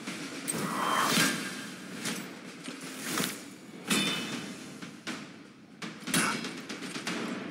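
Spell effects whoosh and burst in short bursts.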